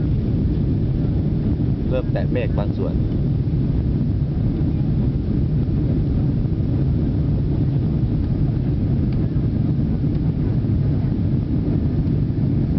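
Jet engines roar steadily from inside an airliner cabin in flight.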